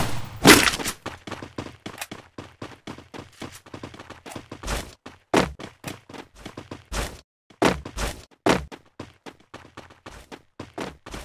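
Footsteps patter quickly as a game character runs.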